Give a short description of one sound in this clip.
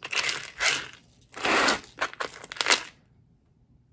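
Beads and metal jewellery clatter and rattle as a pile is shifted.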